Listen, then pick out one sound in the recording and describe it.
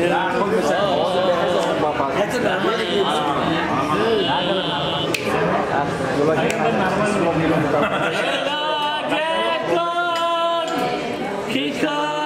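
Several men chatter and laugh in the background.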